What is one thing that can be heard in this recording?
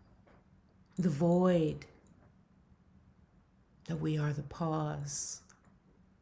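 A middle-aged woman speaks calmly in short phrases over an online call.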